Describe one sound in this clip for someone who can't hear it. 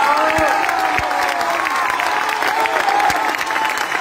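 A man claps his hands in a large hall.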